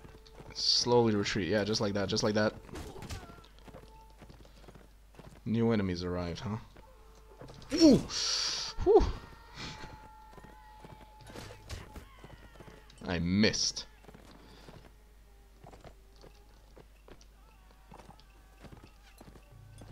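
A bowstring twangs as arrows are loosed.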